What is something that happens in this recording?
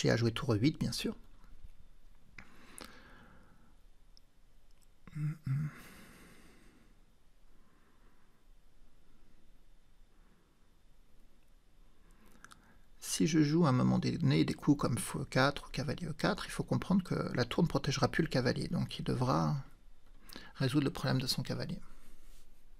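A man speaks calmly and thoughtfully, close to a microphone.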